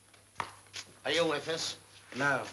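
A young man speaks loudly and firmly.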